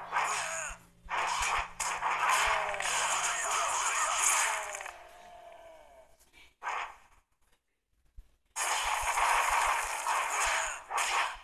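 Electric energy blasts crackle and roar in bursts.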